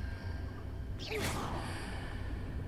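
A magical spell bursts with a crackling whoosh.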